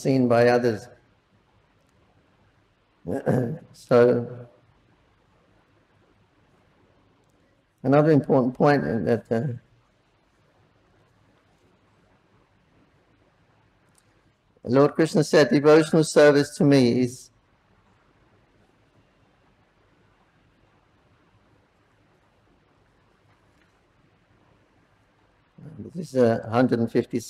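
An elderly man speaks calmly into a microphone, with long pauses between phrases.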